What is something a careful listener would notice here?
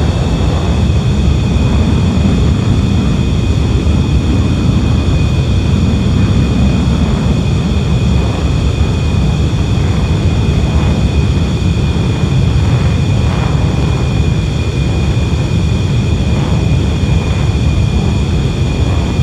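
Jet engines roar steadily with a low rumble.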